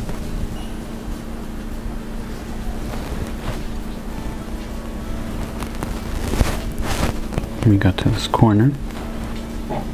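Small beads click softly against a needle.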